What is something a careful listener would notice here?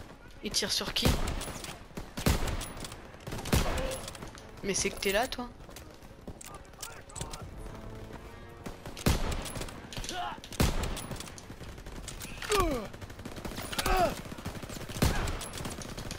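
Gunshots crack repeatedly nearby.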